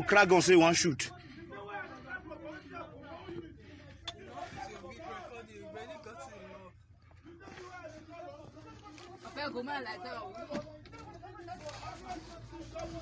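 Several men argue heatedly nearby.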